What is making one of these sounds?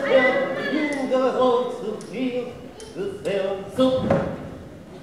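A man speaks with feeling in an echoing hall.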